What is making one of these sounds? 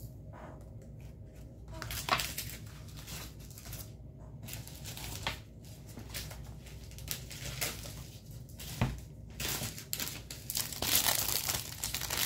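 Plastic packaging rustles and crinkles as it is handled.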